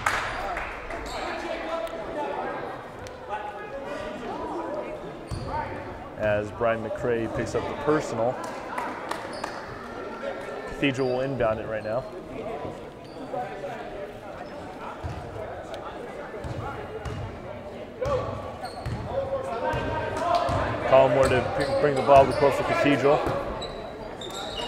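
Players and spectators shout and chatter in an echoing gym.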